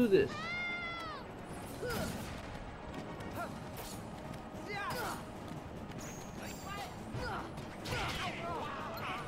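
Sword strikes and battle effects clash in a video game.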